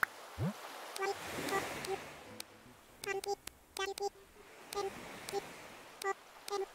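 Short, soft electronic blips sound quickly, one after another, as letters are typed.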